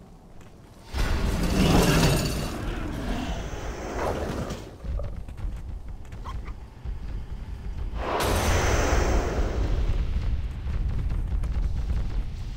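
Battle noises of clashing weapons and spells burst out loudly.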